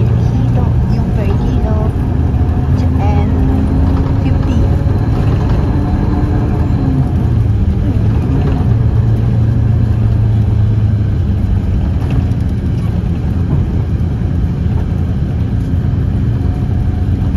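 A vehicle's engine hums steadily from inside as it drives along.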